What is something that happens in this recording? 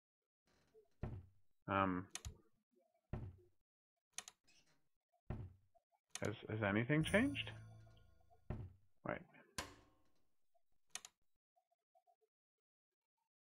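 A wooden drawer slides open and bangs shut several times.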